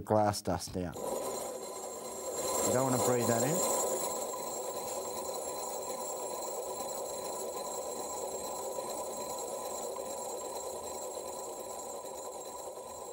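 A drill whirs steadily as it bores into glass.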